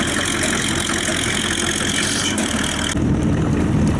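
An engine runs with a steady rumble.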